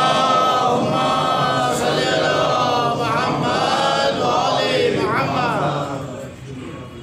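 A man speaks with feeling into a microphone, heard through a loudspeaker in a reverberant room.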